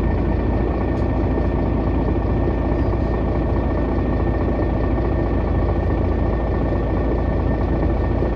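A car approaches slowly with its engine humming.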